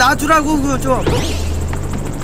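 A man speaks into a microphone close by.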